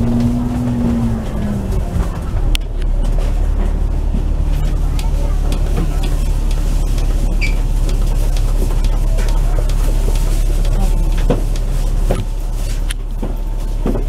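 A bus engine hums steadily from inside.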